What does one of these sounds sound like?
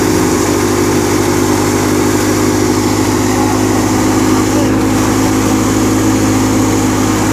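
A threshing machine's engine roars steadily close by.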